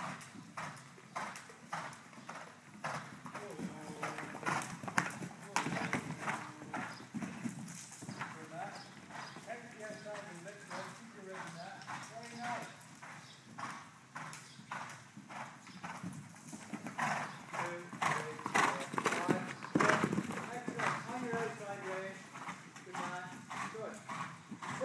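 Horse hooves thud rhythmically on soft arena footing.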